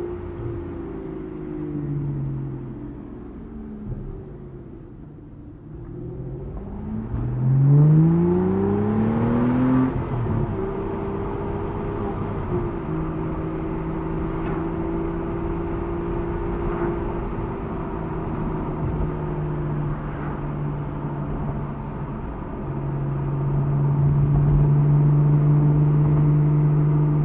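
A car engine hums and revs up sharply, then settles into a steady drone.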